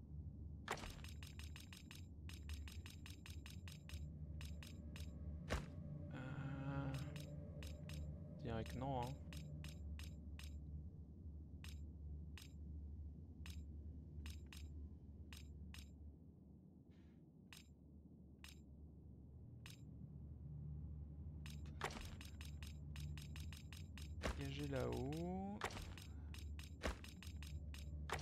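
Short menu clicks tick rapidly, in bursts.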